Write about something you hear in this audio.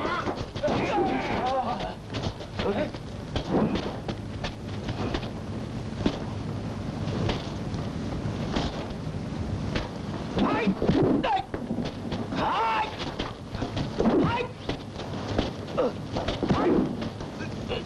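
Wooden staffs strike with sharp knocks.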